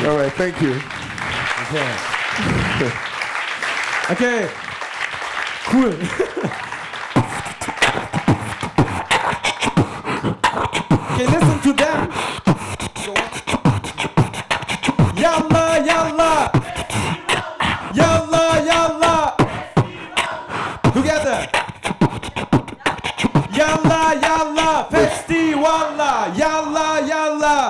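A young man raps and sings with animation into a microphone through loudspeakers.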